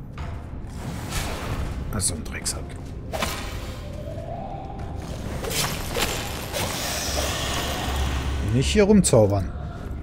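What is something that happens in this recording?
Magic blasts and clashing weapons sound out in a fight.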